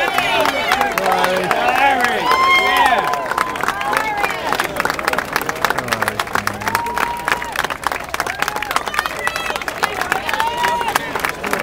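A crowd claps steadily.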